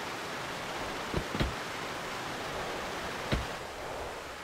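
A car door thumps shut.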